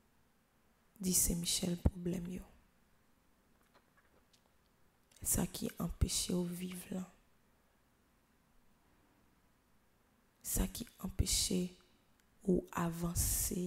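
Two young girls read out a prayer together into microphones, in short phrases with pauses.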